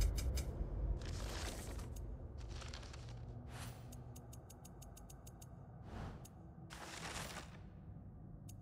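Paper pages rustle and swish as they turn.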